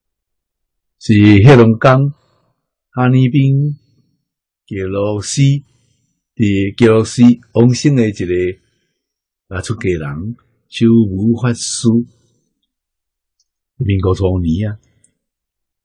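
An elderly man speaks calmly and slowly into a close microphone, with pauses.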